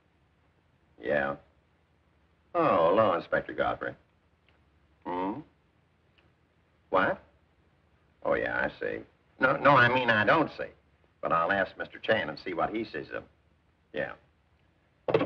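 A man speaks into a telephone in short, halting phrases.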